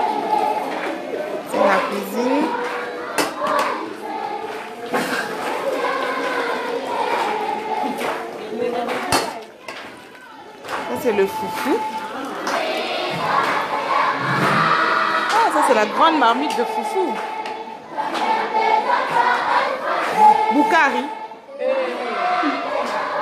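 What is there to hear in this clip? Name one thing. Several women talk and call out loudly nearby.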